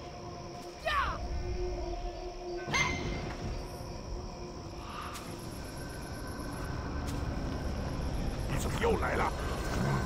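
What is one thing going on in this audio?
Magic spells whoosh and crackle.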